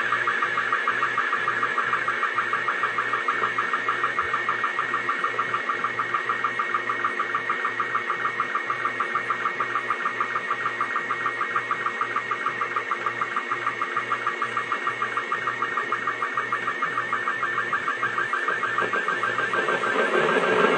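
A slow-scan television radio signal warbles steadily, with rapid, even sync beeps.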